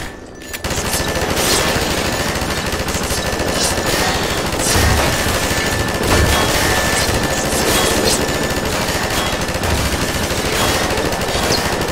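Bullets ping off metal and concrete.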